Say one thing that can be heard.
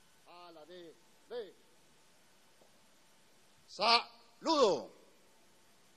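A man speaks loudly through a microphone outdoors, calling out short phrases.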